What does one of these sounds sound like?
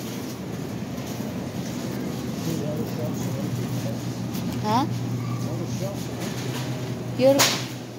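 A shopping cart rolls and rattles over a smooth floor.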